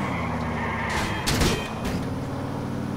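A car crashes into a post with a loud bang.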